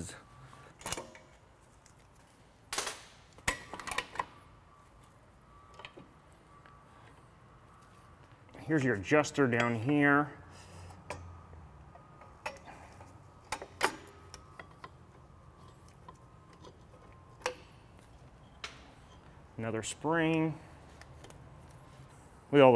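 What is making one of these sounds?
Metal parts of a brake clink and clack as they are worked on by hand.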